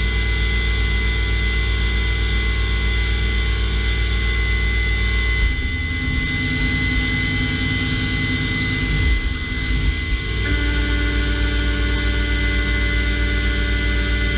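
A machine spindle whirs with a steady whine that shifts in pitch.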